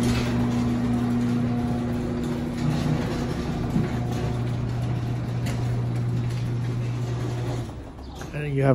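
A garage door motor hums steadily, then stops.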